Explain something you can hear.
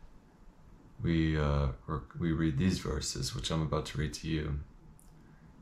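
A young man speaks calmly and close up.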